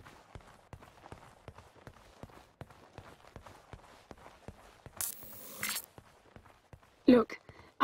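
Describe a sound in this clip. Footsteps tap on a hard floor at an even pace.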